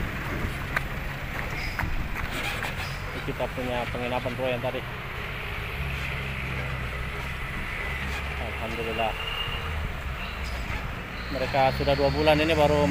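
Heavy truck engines rumble and labour.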